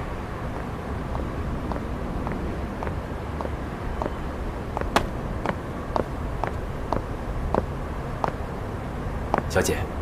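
Boots tread steadily on pavement, coming closer.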